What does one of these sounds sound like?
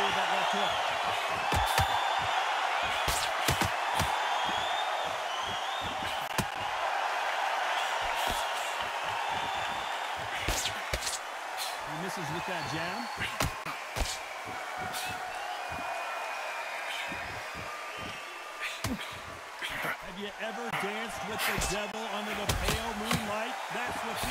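Punches thud against a boxer's body and head.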